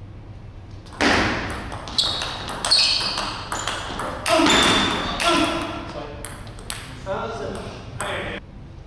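A ping-pong ball clicks back and forth off paddles and a table in an echoing hall.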